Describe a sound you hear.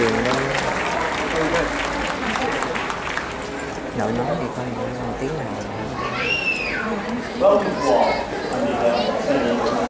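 A crowd of people chatters nearby outdoors.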